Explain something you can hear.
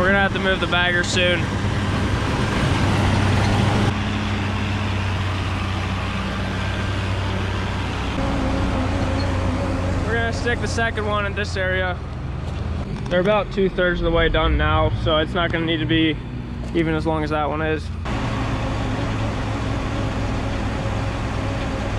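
A tractor engine idles with a low steady rumble.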